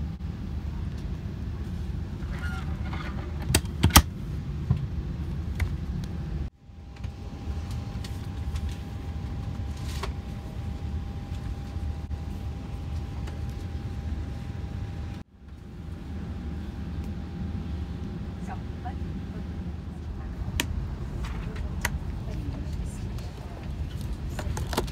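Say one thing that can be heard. A steady low cabin hum drones throughout.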